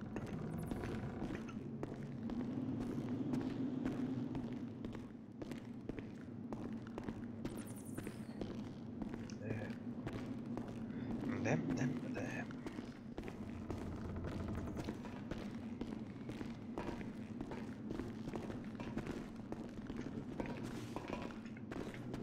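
Footsteps crunch steadily on gravel in an echoing tunnel.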